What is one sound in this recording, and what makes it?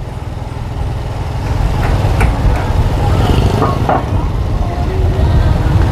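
Motorbike engines hum as they pass by on a street.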